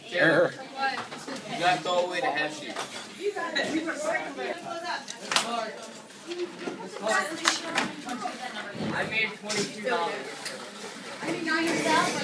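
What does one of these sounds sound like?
Many children talk and chatter at once in an echoing room.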